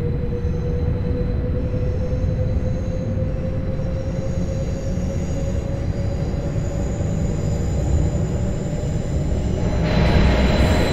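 A train's electric motor hums and rises in pitch as it speeds up.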